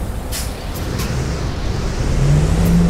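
A bus engine revs up, rising in pitch.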